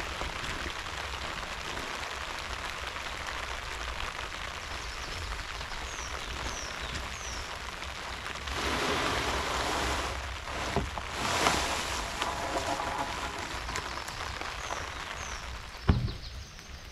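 Rain patters steadily on a plastic tarp.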